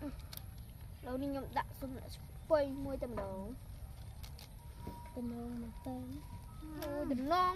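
A young girl talks nearby.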